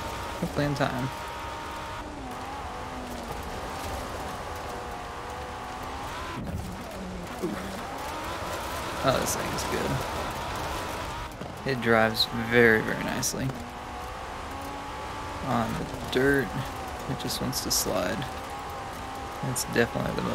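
A rally car engine roars at high revs throughout.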